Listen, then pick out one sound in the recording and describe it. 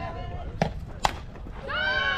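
A bat cracks against a softball.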